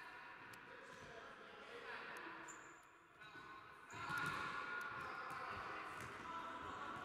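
A ball is kicked with sharp thuds in a large echoing hall.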